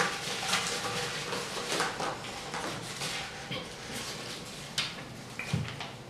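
Paper rustles and crinkles as a scroll is unrolled.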